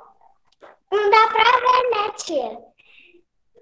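A young girl speaks through an online call.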